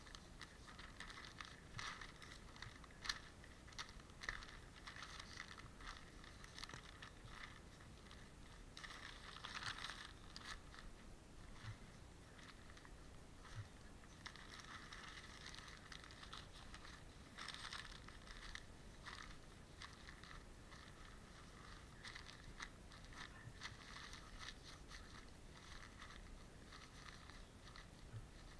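Newspaper rustles and crinkles close by as it is handled.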